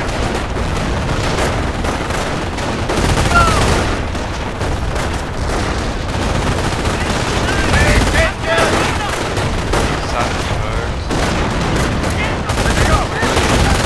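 Gunfire crackles steadily in a battle.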